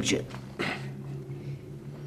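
A middle-aged man speaks in a low voice.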